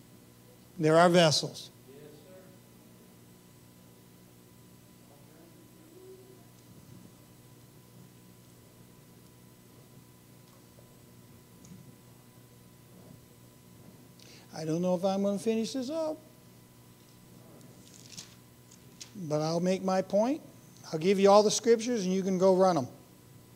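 A middle-aged man speaks calmly into a microphone, with long pauses.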